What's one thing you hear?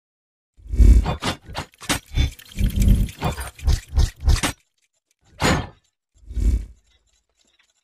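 Metal gears clank and whir as they lock together.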